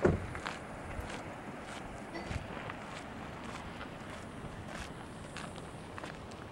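Wind blows steadily across an open hillside.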